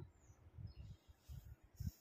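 Chalk scrapes softly across cloth.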